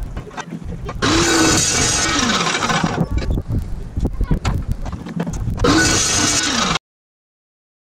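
A chop saw motor whines loudly as it spins up and then winds down.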